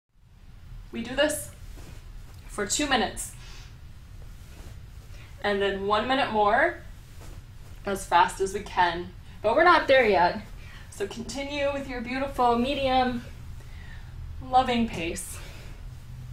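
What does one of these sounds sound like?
A woman speaks calmly and clearly, giving instructions, close by.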